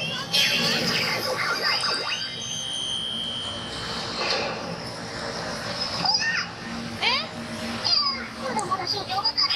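A pachinko machine plays loud electronic music and sound effects.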